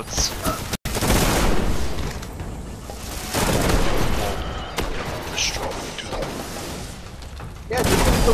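Rapid gunfire blasts close by.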